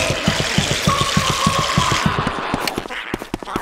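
Game footsteps thump rhythmically as a character climbs a ladder.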